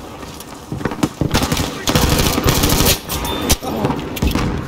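A rifle fires loud gunshots.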